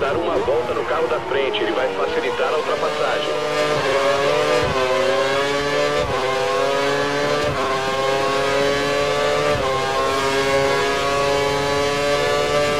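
A racing car engine screams at high revs, dipping in pitch at each quick gear change.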